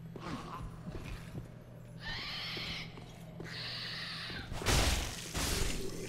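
A sword swings and strikes with a heavy impact.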